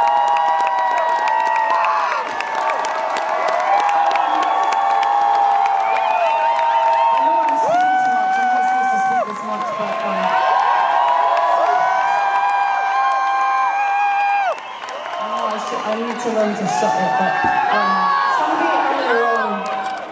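A young woman sings through loudspeakers at a live concert.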